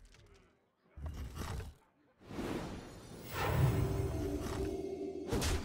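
Magical game effects whoosh and shimmer.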